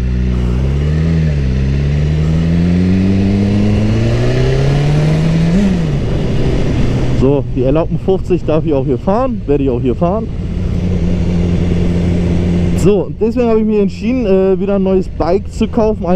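A motorcycle engine hums and rises in pitch as it speeds up, then drops and runs steadily.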